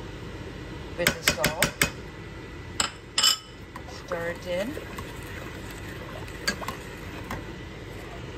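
A metal spoon clinks and scrapes against a pot.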